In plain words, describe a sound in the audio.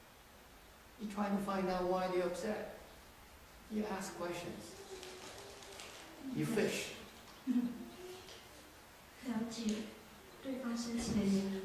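An elderly man speaks calmly and slowly into a microphone, with pauses.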